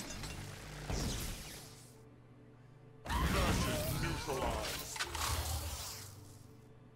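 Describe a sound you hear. Game spell effects burst with whooshing blasts.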